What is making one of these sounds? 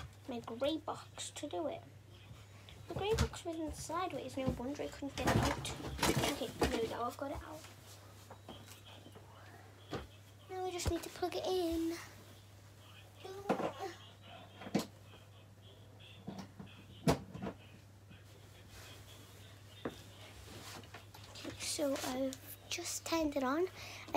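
A young girl talks excitedly close by.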